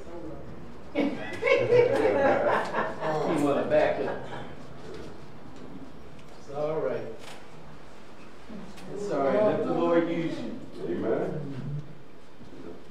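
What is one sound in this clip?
A man speaks through a microphone in an echoing room.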